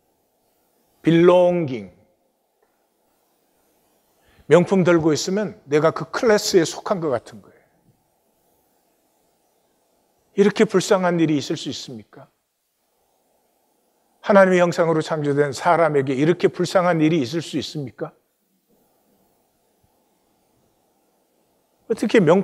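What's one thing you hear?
An elderly man speaks calmly and slowly through a microphone, with long pauses.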